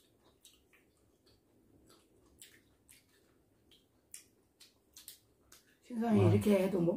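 A man chews and slurps food close by.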